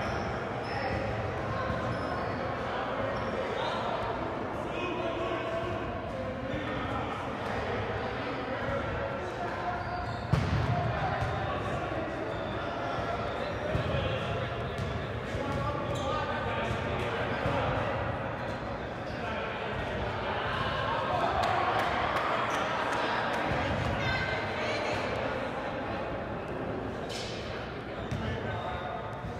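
Players and spectators call out and chatter in a large echoing hall.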